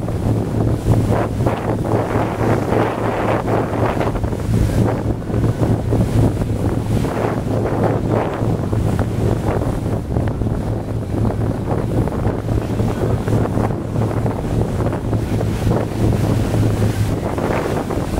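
A small boat's motor hums steadily, then stops.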